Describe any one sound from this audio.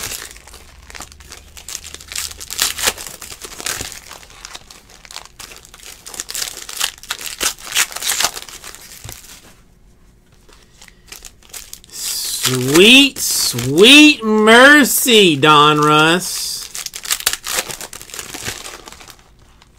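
Foil card wrappers crinkle and tear as hands open them.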